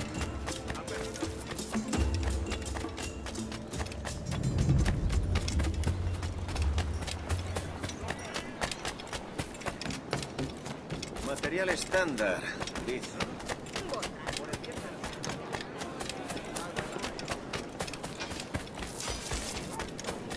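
Footsteps run quickly over stone and dirt.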